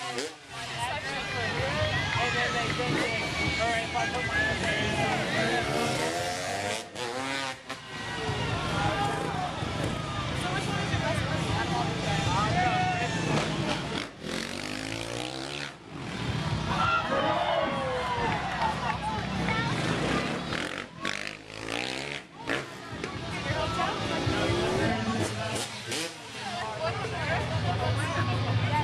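A crowd chatters and cheers outdoors.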